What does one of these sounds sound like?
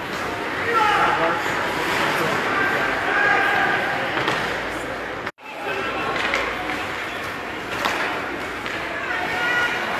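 Skates scrape and carve across ice in a large echoing arena.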